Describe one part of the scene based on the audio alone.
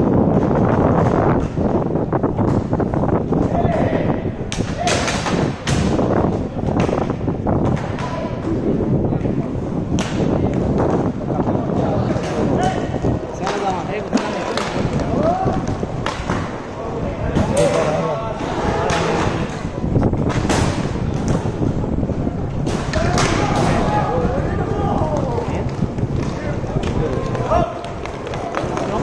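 Hockey sticks clack against a ball and the court.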